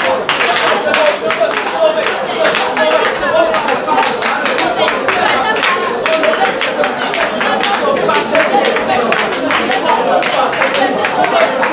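A group of people claps hands in a steady rhythm.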